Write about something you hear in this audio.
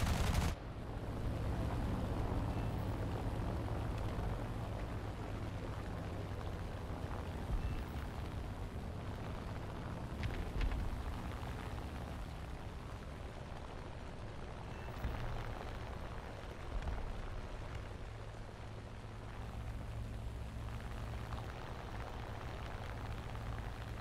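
A propeller plane's engine roars steadily.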